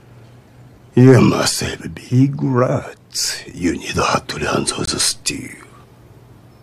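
A middle-aged man speaks firmly and slowly, close by.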